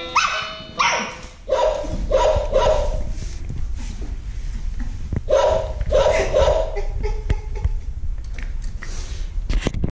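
Puppies' claws patter and scrape on a hard floor.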